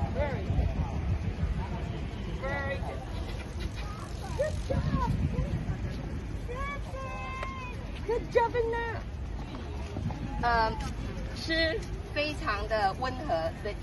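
A woman talks gently and close by.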